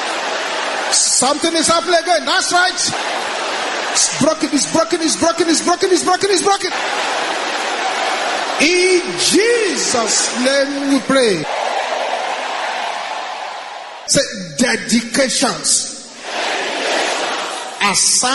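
A man prays aloud with fervour through a microphone.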